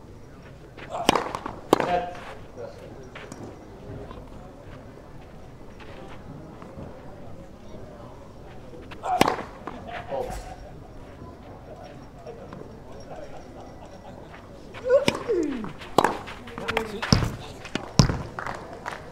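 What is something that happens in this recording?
Tennis rackets hit a ball with sharp pops, back and forth.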